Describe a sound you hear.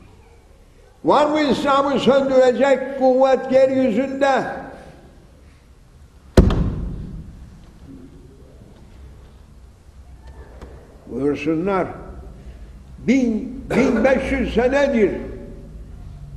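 An elderly man preaches loudly and passionately in a large echoing hall.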